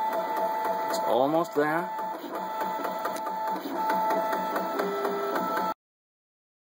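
A printer's motors whir and whine in changing pitches as the print head moves.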